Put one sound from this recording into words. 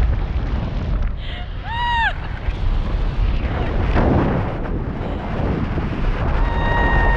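Strong wind rushes and buffets loudly outdoors.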